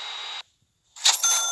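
A short chime sounds as a job completes.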